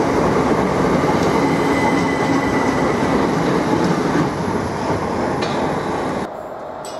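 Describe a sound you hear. Train wheels clatter over the rail joints.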